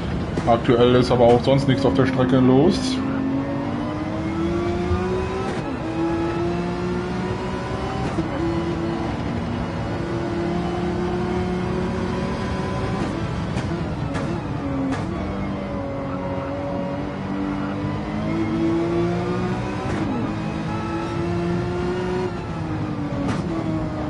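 A racing car engine roars, revving up and down through the gears.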